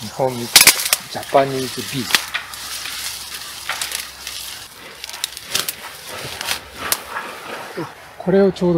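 Dry stalks rustle and snap as they are pulled by hand.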